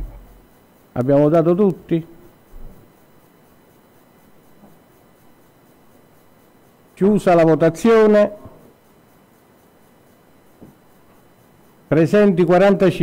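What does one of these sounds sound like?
An elderly man speaks calmly into a microphone in short phrases, with long pauses.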